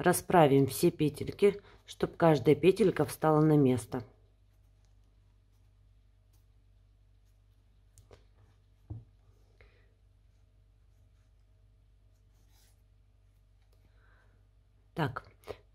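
Hands rustle and rub a crocheted piece of yarn.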